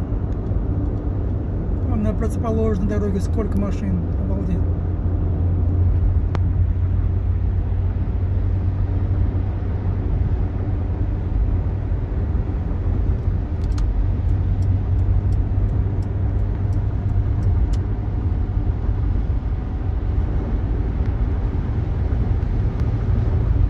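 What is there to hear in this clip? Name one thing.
A car's engine hums and tyres roar steadily on a highway.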